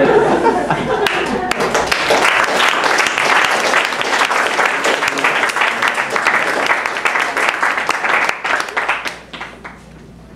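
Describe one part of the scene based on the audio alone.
An audience claps and cheers loudly.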